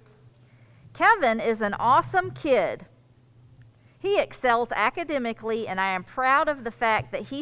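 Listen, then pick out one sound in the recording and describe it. A woman speaks calmly into a microphone, reading out.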